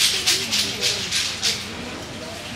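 Metal tongs clink against a plate.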